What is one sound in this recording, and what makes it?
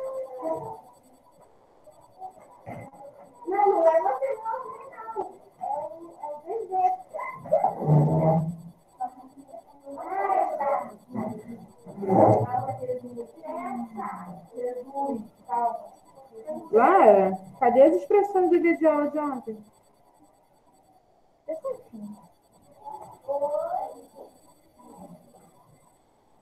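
A woman speaks calmly into a close microphone, as on an online call.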